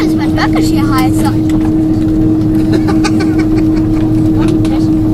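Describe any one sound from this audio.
Jet engines roar steadily inside an airliner cabin.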